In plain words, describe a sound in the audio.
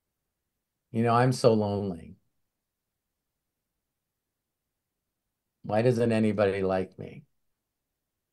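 A middle-aged man speaks calmly over an online call, in short bursts.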